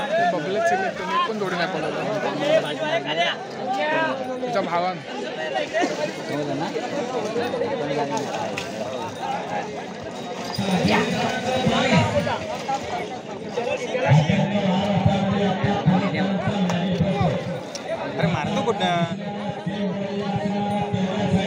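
A large outdoor crowd of men chatters and shouts.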